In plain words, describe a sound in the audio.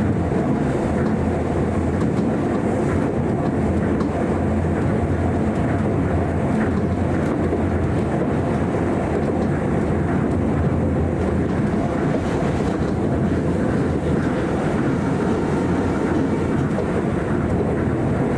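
Wheels click faintly over rail joints.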